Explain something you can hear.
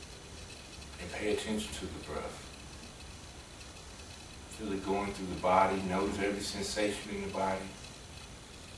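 A man speaks calmly and softly nearby.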